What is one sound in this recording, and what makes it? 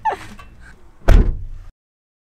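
A car boot slams shut with a heavy thud.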